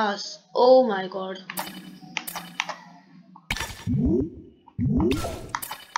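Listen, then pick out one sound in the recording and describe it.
Short electronic menu clicks sound as selections are made.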